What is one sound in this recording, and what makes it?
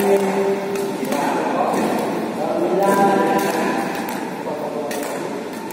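Badminton rackets smack a shuttlecock back and forth in an echoing hall.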